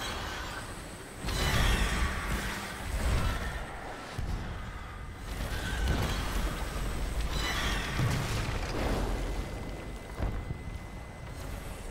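A laser beam blasts and crackles in loud bursts.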